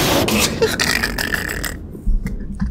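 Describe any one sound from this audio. A young man laughs into a nearby microphone.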